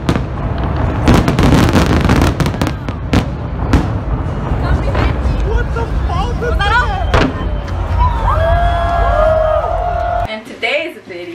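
Fireworks bang and crackle loudly outdoors.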